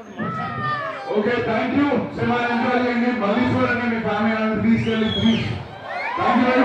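A young man speaks loudly into a microphone over loudspeakers.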